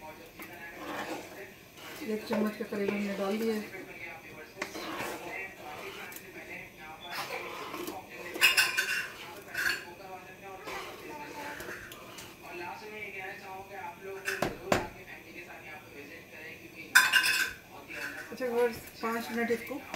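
A ladle stirs and scrapes through thick soup in a metal pan.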